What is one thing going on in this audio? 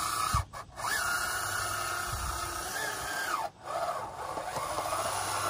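A small electric motor whines as a toy bulldozer drives along, rising and falling in pitch.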